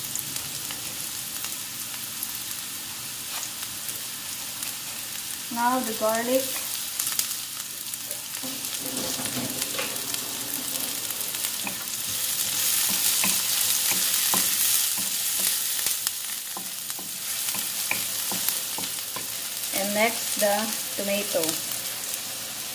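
Chopped onion sizzles in hot oil in a wok.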